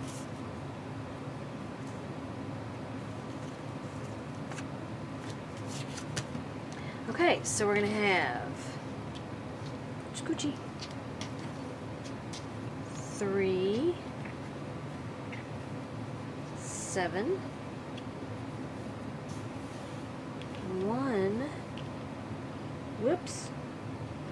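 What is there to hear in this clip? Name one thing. Hands rustle and slide pieces of cotton fabric on a cutting mat.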